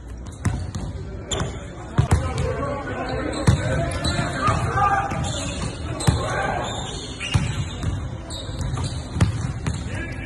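Basketballs bounce on a hard wooden floor in a large echoing hall.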